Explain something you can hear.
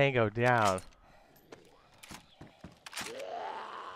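Metal parts of a rifle click and clatter as it is handled.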